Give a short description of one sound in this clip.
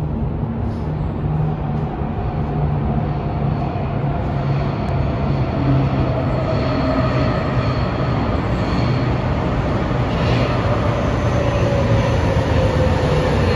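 Train wheels whine on the rails.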